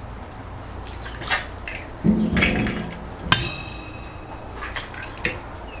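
An egg cracks against the rim of a stainless steel bowl.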